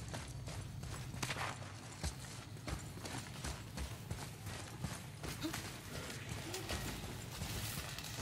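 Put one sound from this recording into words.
Heavy footsteps thud on stone in an echoing space.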